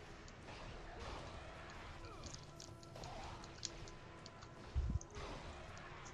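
Chained blades swish and strike skeletons with sharp clashes.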